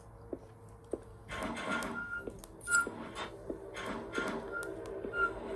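Wooden cabinet doors creak open.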